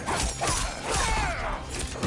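A blade whooshes through the air in a fiery swipe.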